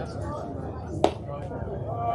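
A baseball smacks into a catcher's glove with a sharp pop.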